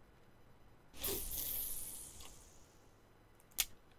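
A fishing rod swishes as the line is cast out.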